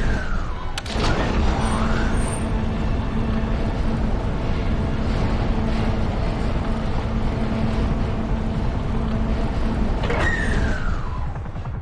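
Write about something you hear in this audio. A lift rumbles and hums steadily as it rises.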